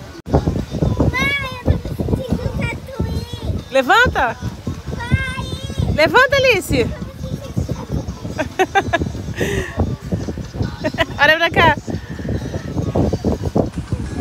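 A young girl laughs with delight close by.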